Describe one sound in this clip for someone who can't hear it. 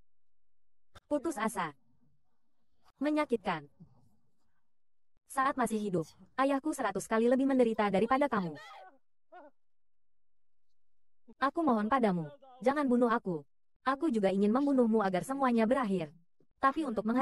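A young woman speaks urgently and close by.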